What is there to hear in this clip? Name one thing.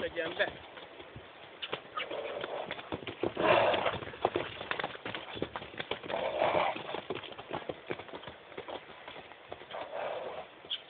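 Hooves thud on dry ground as a horse gallops around.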